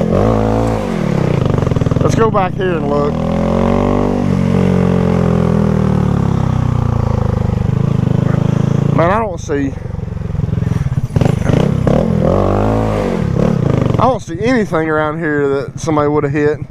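A motorbike engine revs up and down.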